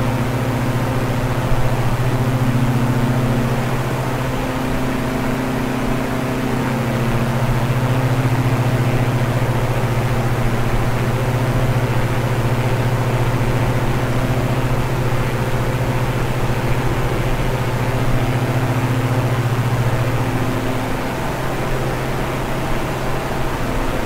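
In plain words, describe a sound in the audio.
A propeller plane's engines drone steadily in flight.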